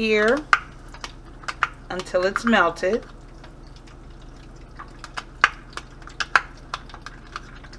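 A metal spoon taps and scrapes against a measuring cup.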